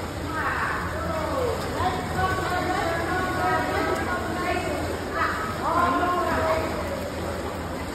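Children shout and cheer in an echoing hall.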